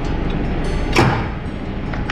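A metal clip snaps shut with a sharp click.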